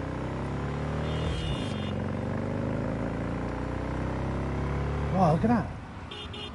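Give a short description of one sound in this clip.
A motorbike engine hums and rises in pitch.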